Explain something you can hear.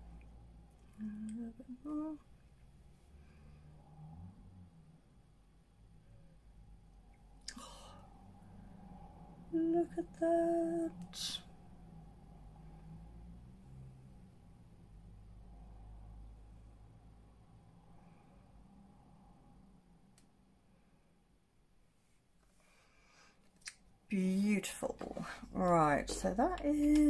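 A young woman speaks softly and close by, now and then.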